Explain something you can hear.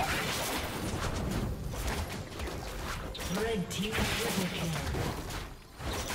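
Spell effects crackle and whoosh in a fast game fight.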